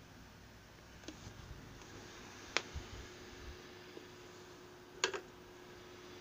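Hard objects knock and click as they are handled close by.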